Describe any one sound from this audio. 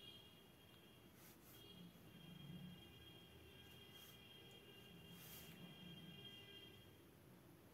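A paintbrush softly brushes across paper.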